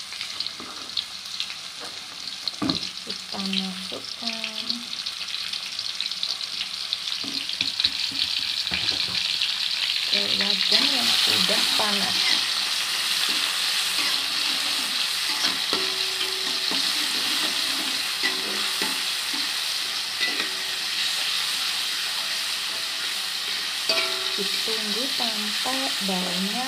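Vegetables sizzle and crackle in hot oil.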